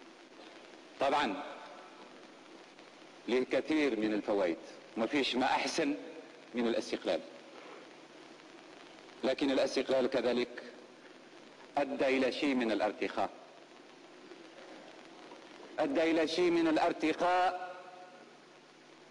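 A man makes a speech forcefully through a microphone, in bursts with pauses, in a large echoing hall.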